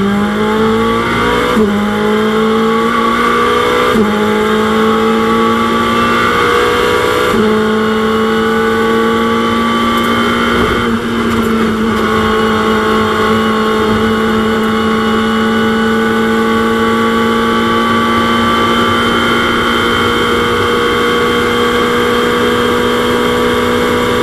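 A race car engine roars loudly at high revs.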